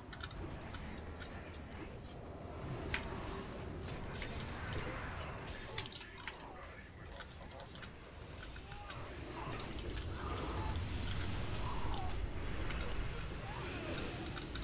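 Spell effects crackle and boom in a game battle.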